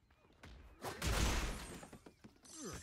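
A crate bursts open with a crash.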